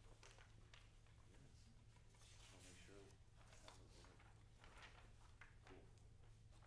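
Sheets of paper rustle.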